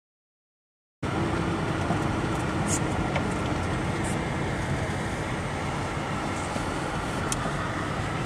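A car's engine hums steadily as it drives.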